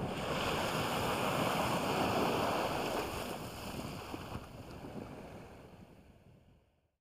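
Water laps and splashes gently, then slowly fades away.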